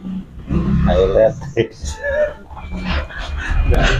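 A young man laughs loudly close by.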